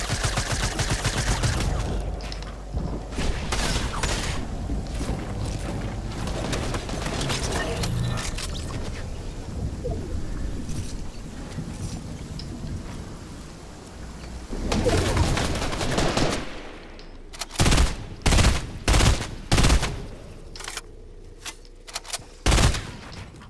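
Gunshots ring out in short, sharp bursts.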